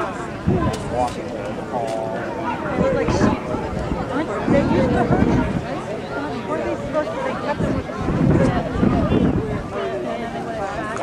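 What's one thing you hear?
A crowd of men and women chatters outdoors nearby.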